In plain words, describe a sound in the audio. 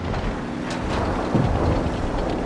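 A shell explodes with a loud boom.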